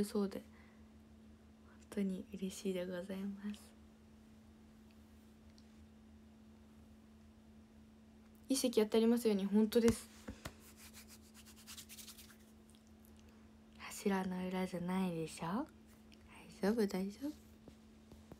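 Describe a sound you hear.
A young woman speaks softly and casually, close to the microphone, in short bursts.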